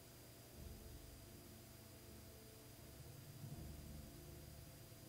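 A man murmurs quietly close to a microphone.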